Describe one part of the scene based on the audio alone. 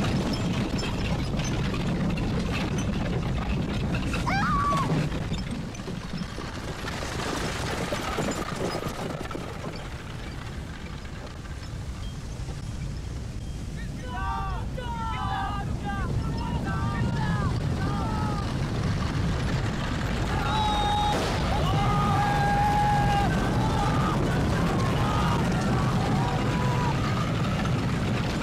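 Wooden carriage wheels rattle over rough ground.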